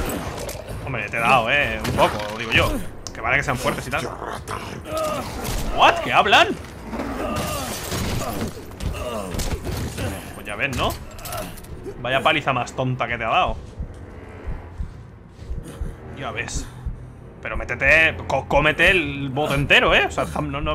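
A man grunts and cries out in pain, close by.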